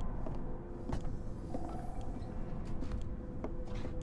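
Footsteps approach.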